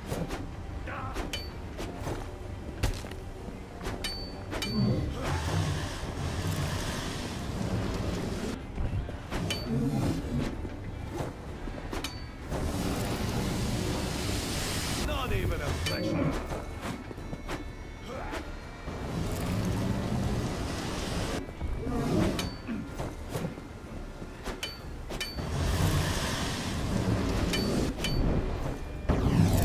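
Metal blades clash and strike.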